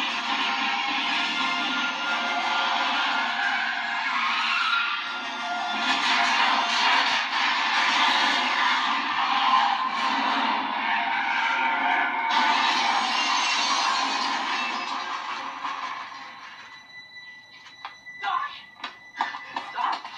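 Film sound plays loudly from a television speaker.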